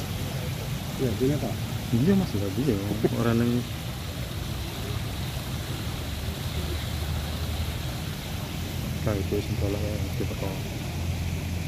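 A woman speaks casually nearby outdoors.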